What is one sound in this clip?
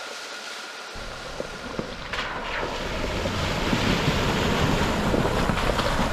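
A vehicle's engine rumbles as it drives closer.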